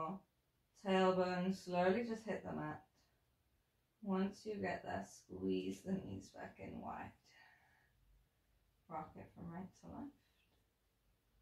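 A woman speaks calmly and gently, close to the microphone, with pauses.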